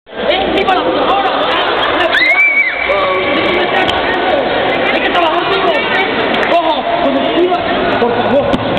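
Girls chatter and call out over one another.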